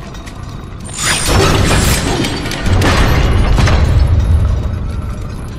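A huge metal mechanism clanks and grinds loudly.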